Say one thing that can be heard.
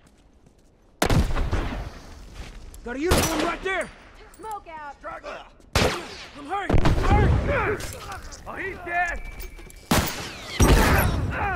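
Gunshots crack loudly in sharp bursts.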